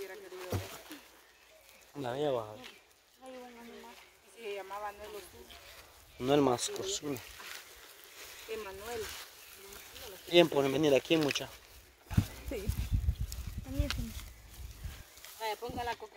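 Young women talk and laugh with animation close by.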